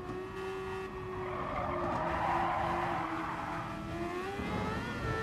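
Tyres screech through a bend.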